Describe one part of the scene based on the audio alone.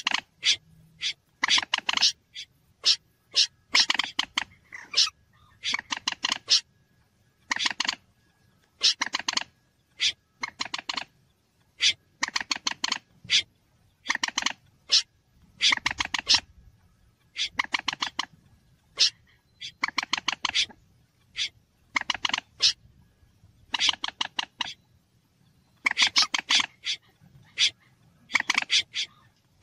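A bird calls in rapid bursts of sharp clicking notes.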